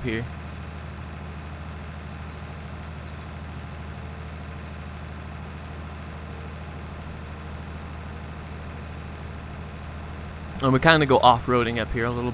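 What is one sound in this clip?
A tractor engine hums steadily as it drives.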